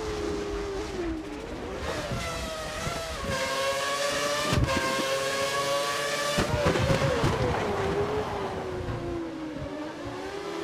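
A racing car engine whines loudly, rising in pitch as it speeds up and dropping as it shifts gear and slows.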